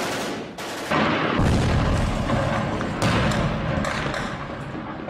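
A heavy explosion booms and rumbles.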